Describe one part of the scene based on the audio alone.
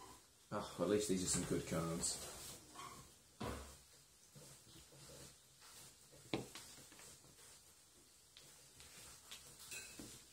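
Playing cards slide and tap softly on a cloth-covered table.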